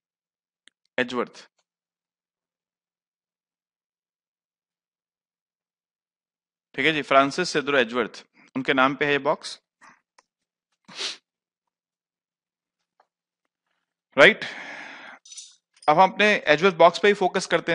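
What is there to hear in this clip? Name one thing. A man speaks calmly into a close headset microphone, in short bursts with pauses.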